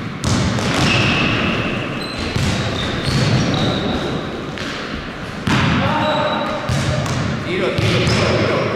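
Sneakers squeak sharply on a gym floor in a large echoing hall.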